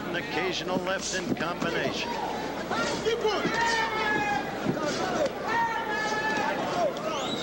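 Boxing gloves thud against bodies.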